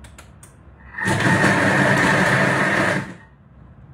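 A kitchen machine whirs loudly for a couple of seconds.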